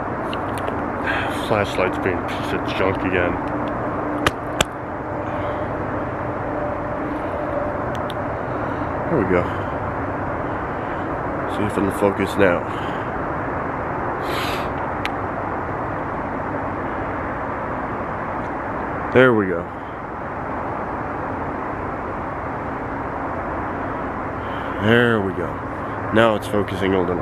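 A man speaks in short bursts close to the microphone.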